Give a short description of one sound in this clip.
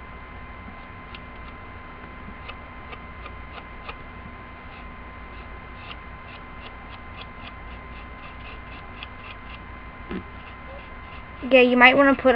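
A paintbrush taps lightly on a plate.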